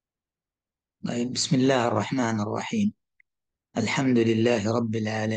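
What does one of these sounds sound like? A man speaks calmly into a microphone, as if on an online call.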